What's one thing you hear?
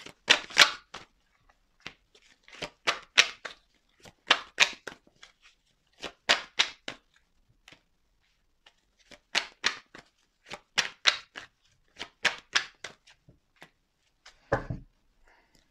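Playing cards are shuffled in short, quick bursts.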